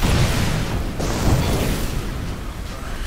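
A magic blast crackles and booms.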